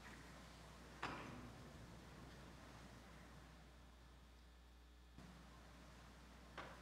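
Small vessels knock and clink on a wooden table in an echoing hall.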